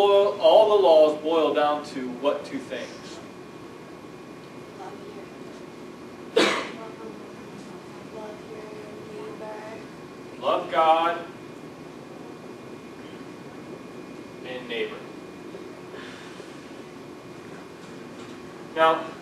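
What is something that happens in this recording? A man lectures in a room with a slight echo, speaking with animation.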